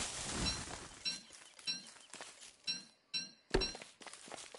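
Short bright chimes ring out as items are picked up.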